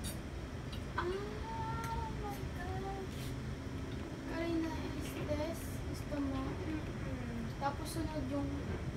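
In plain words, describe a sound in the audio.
A child talks nearby.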